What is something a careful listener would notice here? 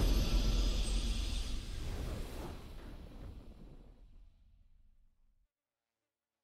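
A triumphant game fanfare rings out and slowly fades to silence.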